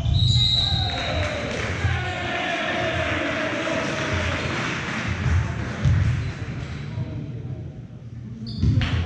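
A crowd cheers and claps.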